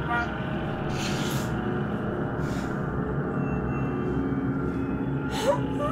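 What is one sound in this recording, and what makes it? A young man and a young woman laugh together.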